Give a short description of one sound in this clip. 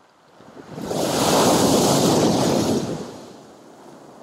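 Waves crash against a concrete pier and splash.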